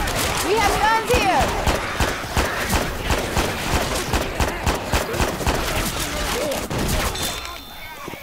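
A rifle fires rapid, loud shots.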